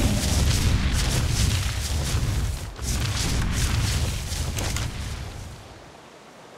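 Hooves thud quickly across the ground.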